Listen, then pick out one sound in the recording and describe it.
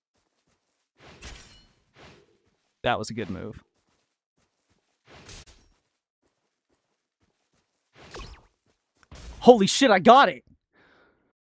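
A sword swings and strikes in short bursts.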